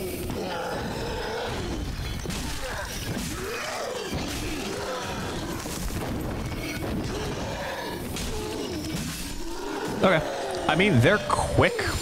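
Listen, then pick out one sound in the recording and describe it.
Swords swing and clash in a fight.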